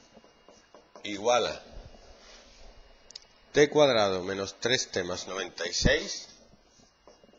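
A man speaks calmly and clearly, close by.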